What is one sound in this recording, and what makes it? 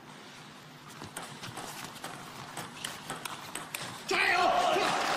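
A table tennis ball clicks back and forth off bats and the table.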